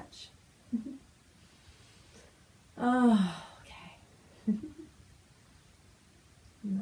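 A young woman speaks calmly and softly nearby, with a long drawn-out word.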